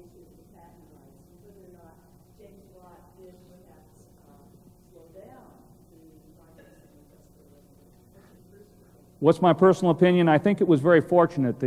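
A man speaks, faint and distant at first, then loud through a microphone.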